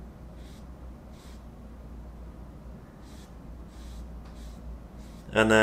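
A paintbrush dabs and brushes softly against canvas.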